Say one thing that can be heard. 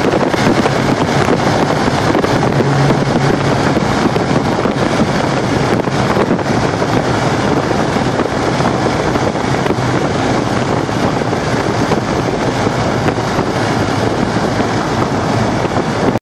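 A car engine hums steadily at speed.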